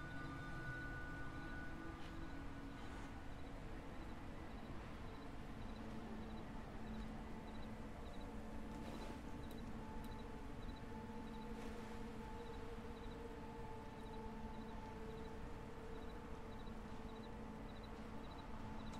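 A handheld electronic device chirps softly in a steady, quick rhythm.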